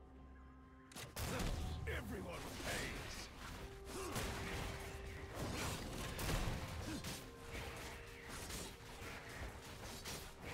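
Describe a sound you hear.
Game combat effects clash and whoosh rapidly.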